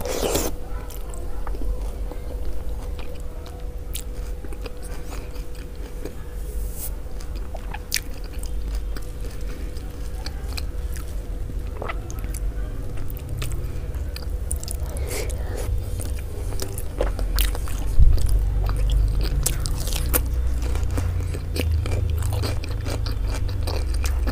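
A woman chews food with wet, smacking sounds close to a microphone.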